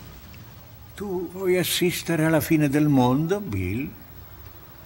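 An elderly man speaks slowly and with emotion, close by.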